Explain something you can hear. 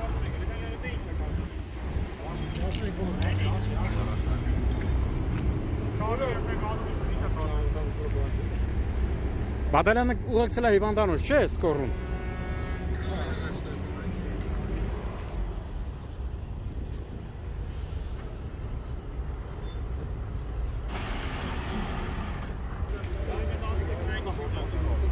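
Men talk calmly in the background.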